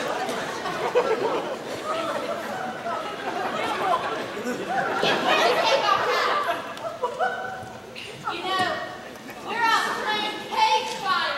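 A group of young men and women shout and call out with animation, heard from a distance.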